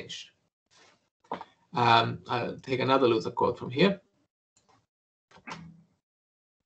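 A man speaks calmly through a headset microphone over an online call.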